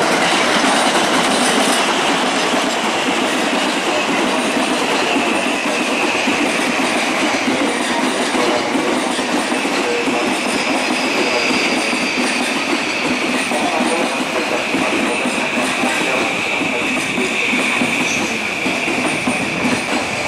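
A passing train rumbles and clatters over the rails close by.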